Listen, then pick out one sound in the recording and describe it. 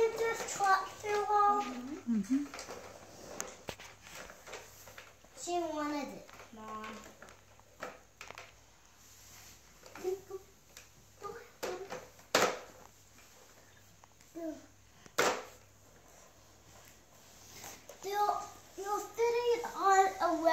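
A toy truck rolls and bumps across a tiled floor.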